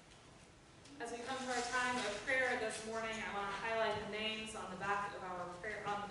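A woman speaks calmly through a microphone in a large echoing hall.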